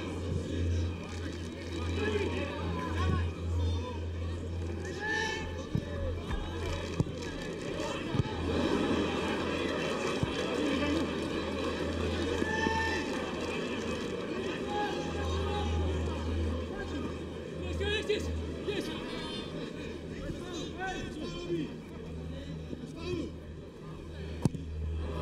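A crowd of football spectators murmurs and chants in the stands of an open-air stadium.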